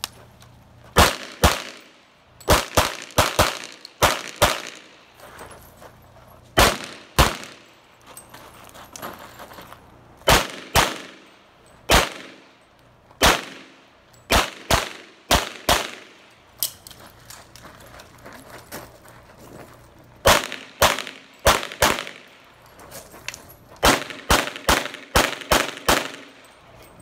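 A pistol fires in quick pairs outdoors.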